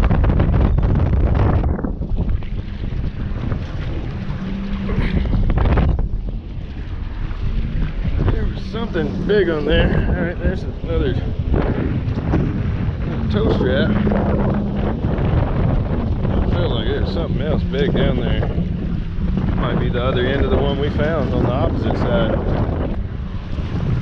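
Water laps and splashes against a dock.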